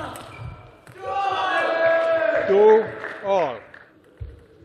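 A young man shouts loudly in celebration.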